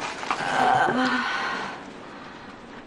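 A man groans and gasps in pain close by.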